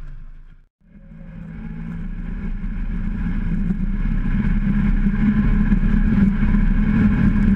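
A snowblower engine rumbles and grows louder.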